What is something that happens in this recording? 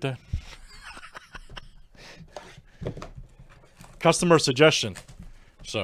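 A cardboard box scrapes and rustles as hands turn it.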